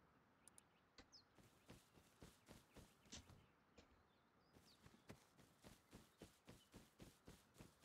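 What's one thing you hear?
Footsteps crunch steadily over dry grass.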